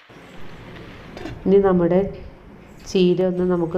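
A metal lid clanks down onto a metal pot.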